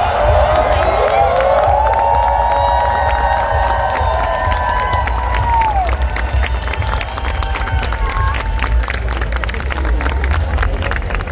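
People in a crowd clap their hands.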